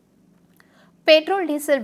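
A young woman reads out the news clearly.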